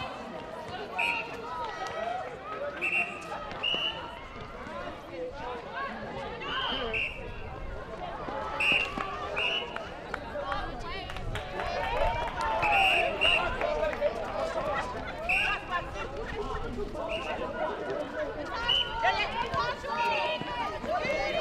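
Sports shoes squeak sharply on a hard court.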